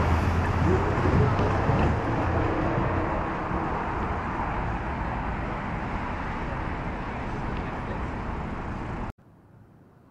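Steady city street noise rumbles outdoors.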